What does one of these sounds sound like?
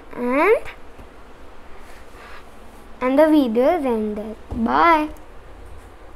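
A young boy speaks close by in a high, sing-song voice.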